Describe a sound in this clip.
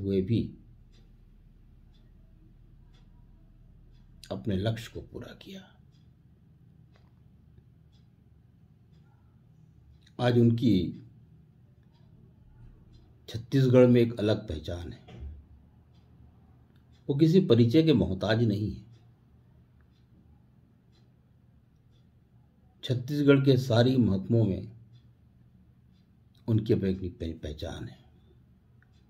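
An elderly man speaks slowly and calmly close to a microphone, in short phrases with long pauses.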